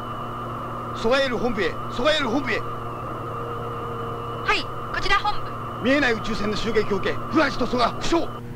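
A young man speaks urgently.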